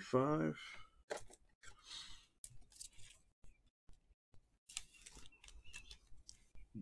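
Plastic card sleeves rustle in hands.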